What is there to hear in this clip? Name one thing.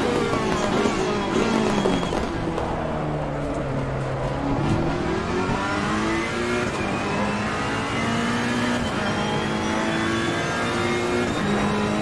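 A racing car's gearbox shifts gears with sharp changes in engine pitch.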